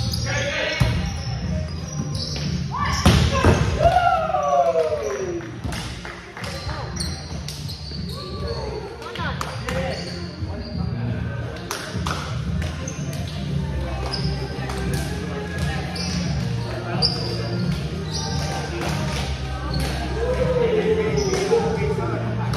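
Players shout and call out to each other in a large echoing gym.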